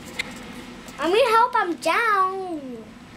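A young child speaks excitedly in a high voice, close by.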